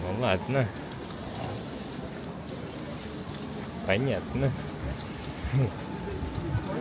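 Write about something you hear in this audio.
Young people talk casually nearby while walking.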